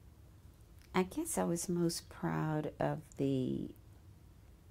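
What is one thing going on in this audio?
An elderly woman speaks calmly and briefly into a nearby microphone.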